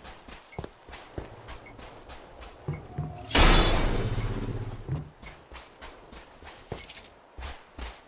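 Footsteps crunch on loose gravel and rubble.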